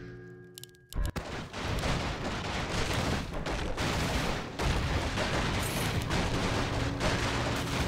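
Swords clash and spells crackle in a busy game battle.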